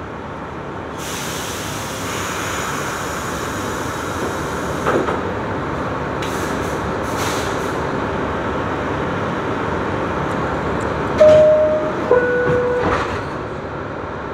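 A subway train hums and rumbles in a tunnel.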